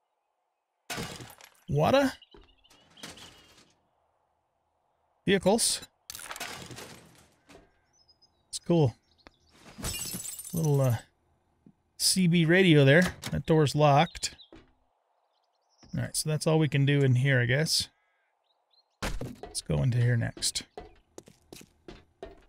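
An elderly man talks with animation into a close microphone.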